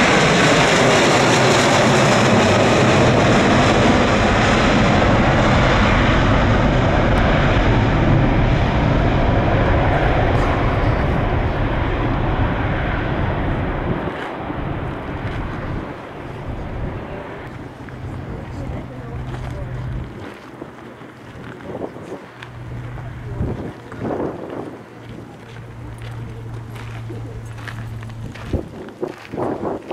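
Jet engines roar loudly overhead as a large aircraft climbs away, slowly fading into the distance.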